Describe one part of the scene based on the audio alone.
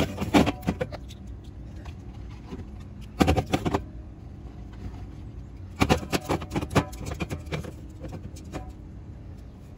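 Aluminium drink cans clink and knock onto a glass shelf.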